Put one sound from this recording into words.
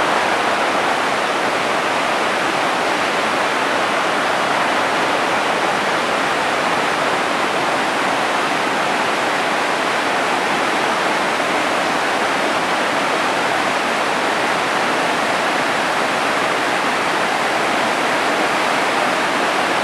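A river rushes loudly over rocks in steady whitewater.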